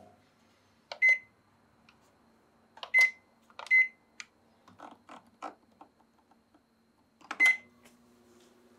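A microwave beeps as buttons are pressed.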